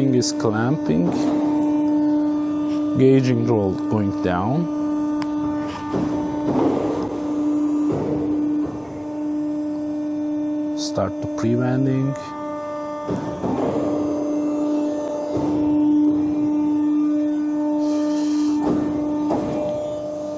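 A rolling machine's motor hums steadily.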